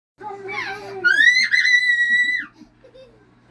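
A young child squeals in a high voice close by.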